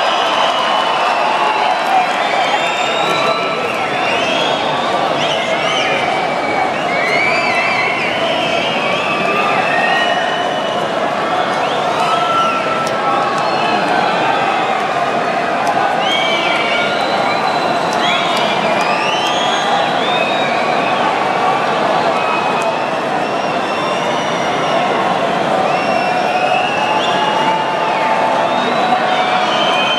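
A band plays music far off, echoing through a large arena.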